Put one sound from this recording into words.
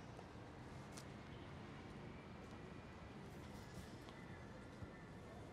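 Footsteps tap on a paved street outdoors.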